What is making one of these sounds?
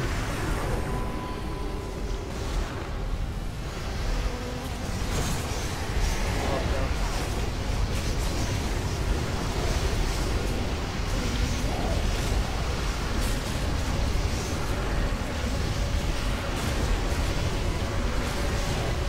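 Spell effects crackle and burst in quick succession.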